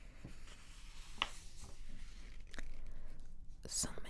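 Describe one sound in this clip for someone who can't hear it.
Glossy magazine pages rustle and crinkle as a page is turned.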